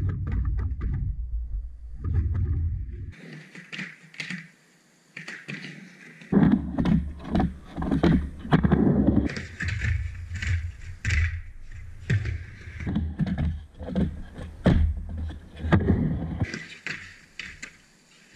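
A skateboard clacks and scrapes against a metal edge.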